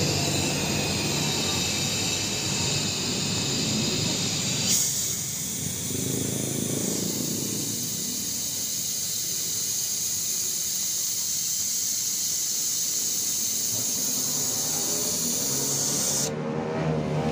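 A small electric pump hums steadily.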